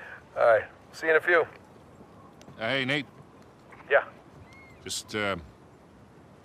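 A man speaks over a handheld radio.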